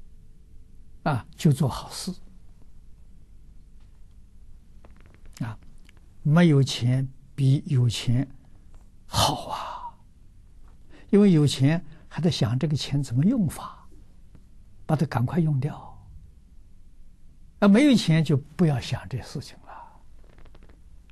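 An elderly man speaks calmly and close, in short phrases with pauses.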